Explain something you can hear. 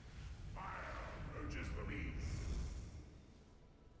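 Magic spells burst and whoosh with loud rumbling blasts.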